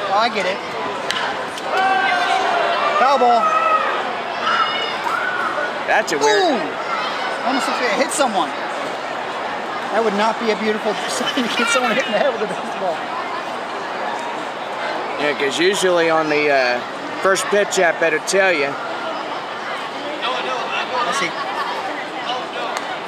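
Nearby men and women in the crowd talk and call out.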